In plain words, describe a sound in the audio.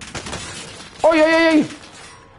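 A man shouts loudly in excitement.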